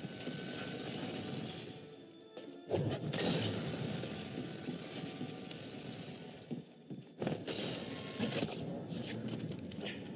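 Electric sparks crackle and hiss.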